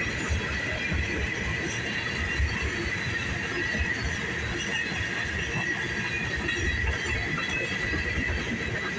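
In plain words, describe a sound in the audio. Tank cars of a freight train rumble and clatter steadily over the rails close by.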